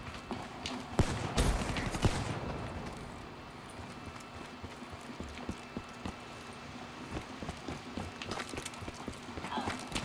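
Footsteps patter steadily on hard ground.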